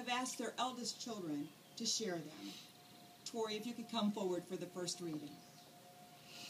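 A woman speaks calmly outdoors, heard from a little distance.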